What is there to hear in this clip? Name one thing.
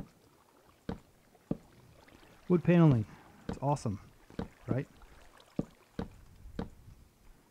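Footsteps knock on wooden boards at an uneven pace.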